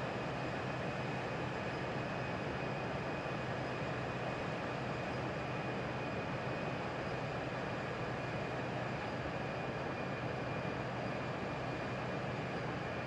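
Jet engines roar steadily with a low, constant hum.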